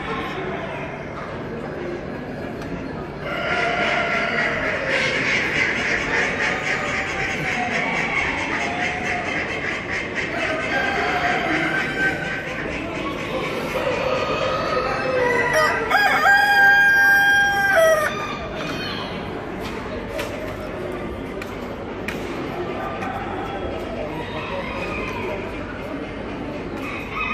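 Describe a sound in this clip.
Chickens cluck and chatter nearby.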